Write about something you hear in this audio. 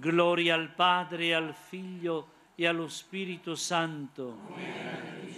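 An elderly man chants into a microphone, heard through loudspeakers outdoors.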